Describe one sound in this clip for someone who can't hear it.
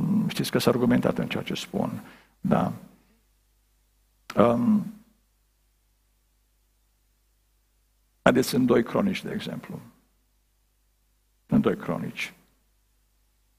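A middle-aged man speaks slowly and solemnly into a microphone, with long pauses.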